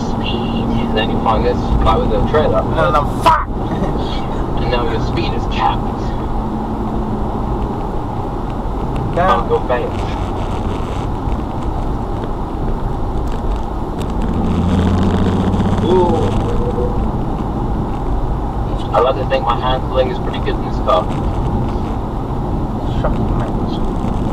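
Tyres rumble on a road surface.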